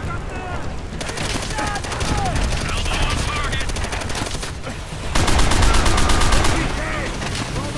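A heavy machine gun fires rapid bursts up close.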